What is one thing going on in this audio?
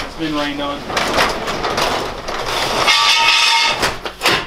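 A garage door rumbles as it rolls shut.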